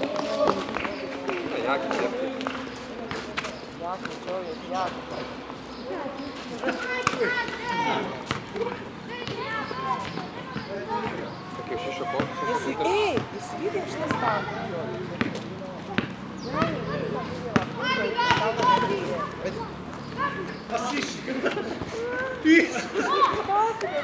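A basketball clangs off a metal hoop.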